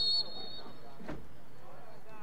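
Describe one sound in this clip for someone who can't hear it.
Lacrosse sticks clack together.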